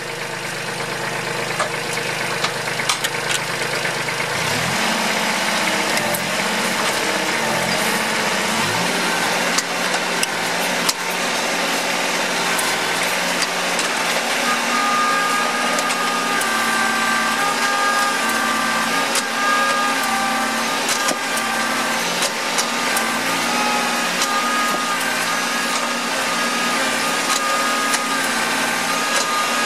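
Small bits of grit tick and rattle as they are thrown.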